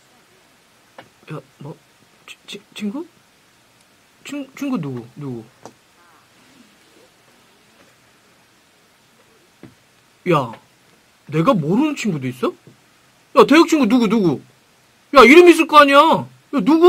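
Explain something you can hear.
A young man speaks into a close microphone in short bursts with pauses.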